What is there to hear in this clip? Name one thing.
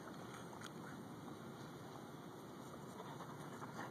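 A dog pants quickly nearby.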